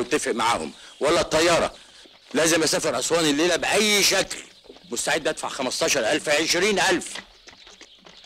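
A man speaks firmly and with emphasis, close by.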